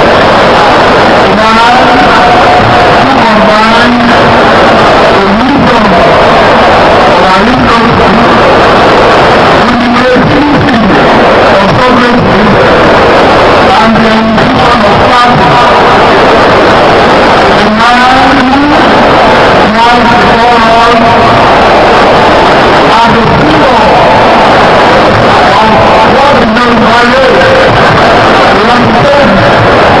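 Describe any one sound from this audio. A man speaks loudly and forcefully into a microphone, heard through loudspeakers in a large open space.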